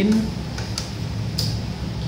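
Buttons on a cash machine's keypad click under a finger.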